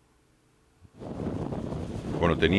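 A rally car engine revs far off.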